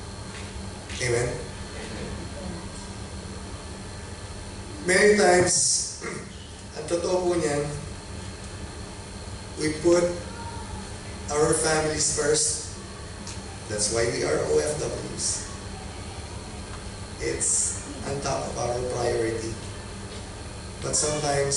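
A man speaks calmly into a microphone through a loudspeaker, with pauses.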